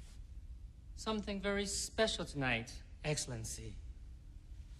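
A man speaks quietly and calmly nearby.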